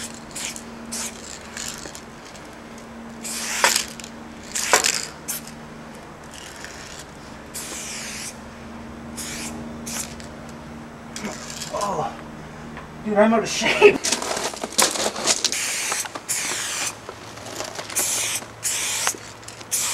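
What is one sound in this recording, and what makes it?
Spray paint hisses from a can in short and long bursts.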